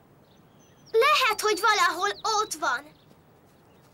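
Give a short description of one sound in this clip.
A young boy talks with animation.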